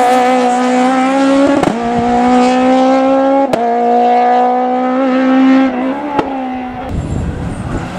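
A rally car engine roars and revs hard, shifting through gears.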